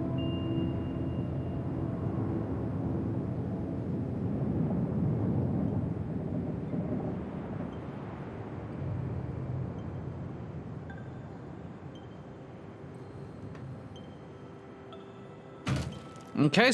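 A landing pod rumbles steadily as it descends, then fades.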